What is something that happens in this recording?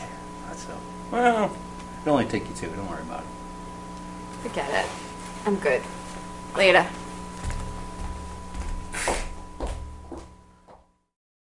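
A young man talks and laughs.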